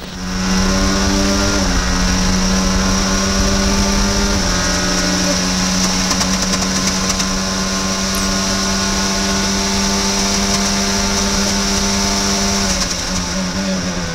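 A racing car engine screams at high revs, shifting up through the gears.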